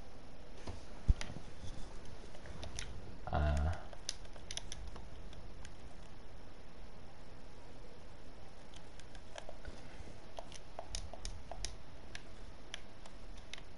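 Soft menu clicks tick one after another.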